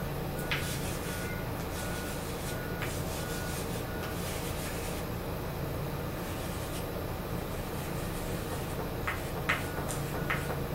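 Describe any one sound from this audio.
Plastic puzzle pieces click and tap on a wooden table.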